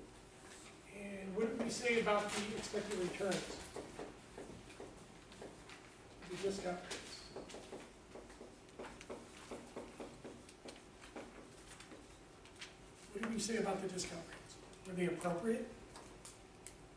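A middle-aged man speaks in a lecturing tone in a room with some echo.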